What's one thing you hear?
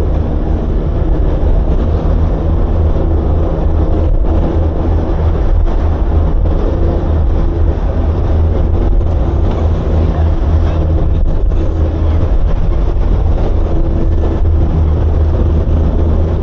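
Wind buffets loudly past.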